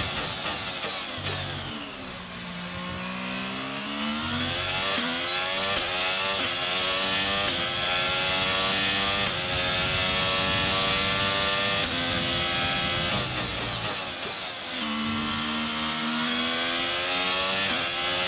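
A racing car engine screams at high revs, dropping in pitch on braking and climbing again as it shifts up through the gears.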